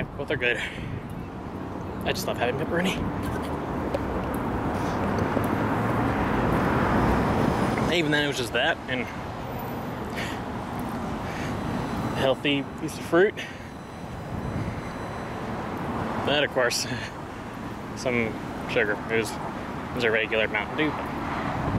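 A young man talks casually, close to a microphone.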